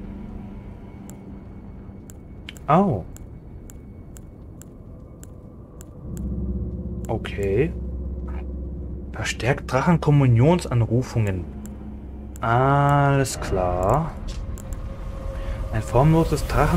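Soft menu clicks tick one after another.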